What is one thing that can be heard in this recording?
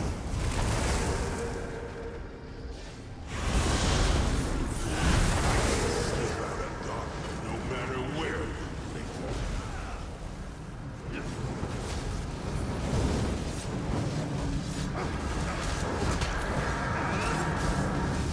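Magic blasts burst and whoosh in a game battle.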